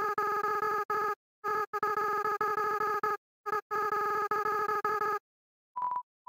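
Rapid pitched electronic blips chatter as game text types out.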